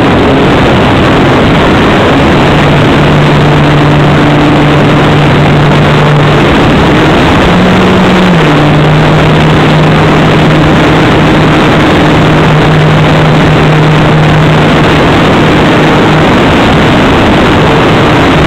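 A small electric motor hums steadily with a propeller whirring, changing pitch now and then.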